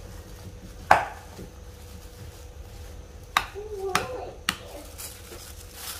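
A spoon scrapes and stirs a dry crumbly mixture in a bowl.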